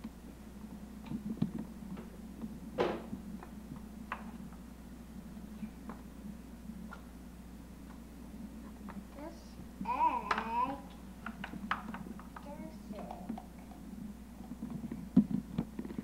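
Plastic toy dishes clatter and knock.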